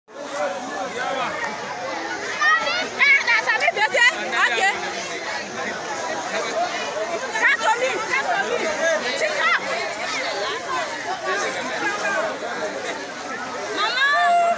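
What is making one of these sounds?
A crowd of men and women shout and call out excitedly at a distance outdoors.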